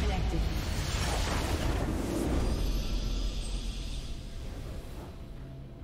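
A loud, shimmering magical burst swells up and fades away.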